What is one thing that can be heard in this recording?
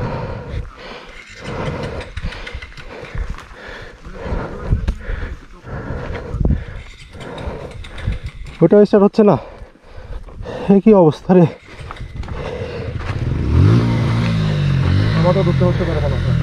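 Boots crunch and scuff on a rocky dirt trail.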